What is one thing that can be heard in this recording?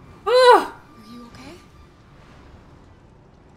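A young girl speaks softly and sadly.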